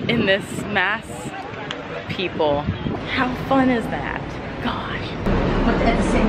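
A young woman talks cheerfully and close to a microphone.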